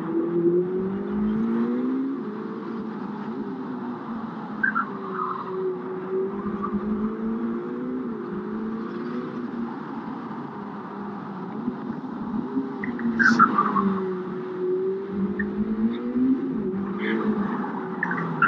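A car engine revs up and down as the car drives along.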